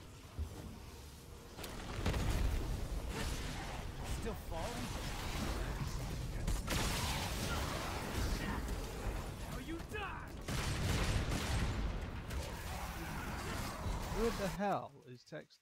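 Sword blows clash in a video game fight.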